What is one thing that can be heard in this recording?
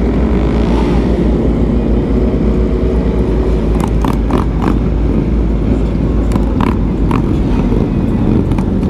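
Other motorcycles roar nearby on the road.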